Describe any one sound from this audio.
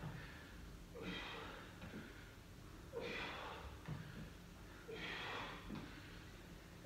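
A man exhales sharply with each hip lift.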